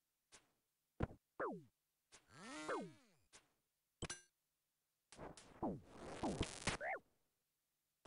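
Game combat sound effects zap and swoosh.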